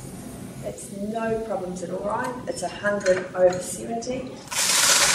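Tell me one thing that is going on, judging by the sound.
A woman speaks calmly and warmly nearby.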